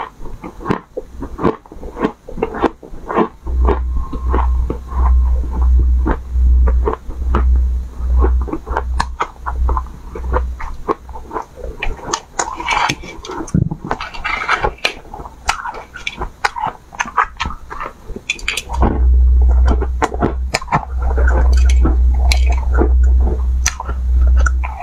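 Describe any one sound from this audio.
A young woman crunches and chews ice loudly close to a microphone.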